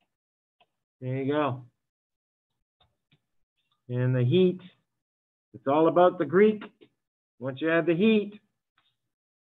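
A man speaks calmly into a microphone in short phrases with pauses.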